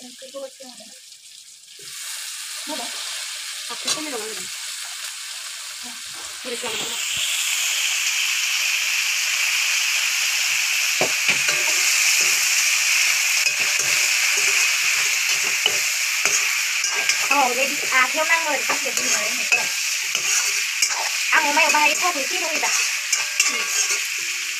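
Food sizzles and hisses in a hot pan.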